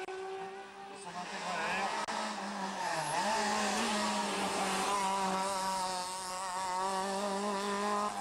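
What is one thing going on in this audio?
A small car engine revs hard, shifting gears as it speeds past.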